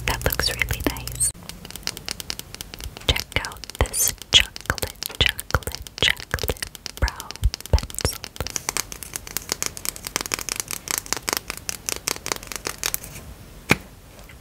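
Fingernails tap and click on a plastic tube close up.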